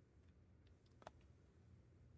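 A cue strikes a snooker ball with a short, sharp click.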